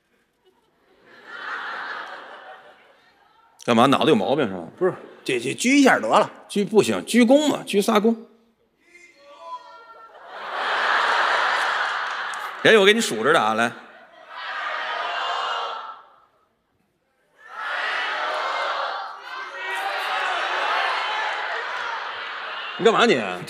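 An audience laughs loudly in a large hall.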